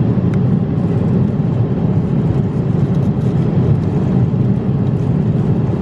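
A foil food tray crackles as it is handled.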